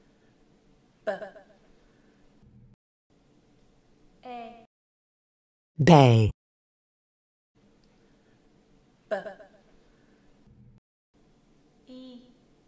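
A man says short single syllables, one at a time, close to a microphone.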